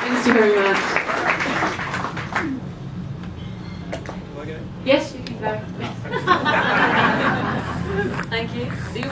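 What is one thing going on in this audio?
A young woman talks into a microphone over a loudspeaker.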